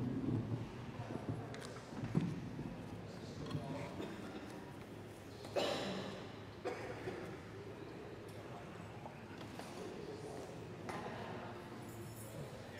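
People shift and shuffle in wooden pews in a large echoing hall.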